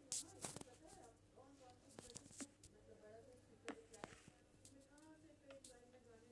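A young child talks close to the microphone.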